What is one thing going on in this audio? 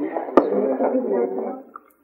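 A man pours a drink from a bottle.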